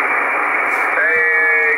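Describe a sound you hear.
A radio gives out a steady whistling tone.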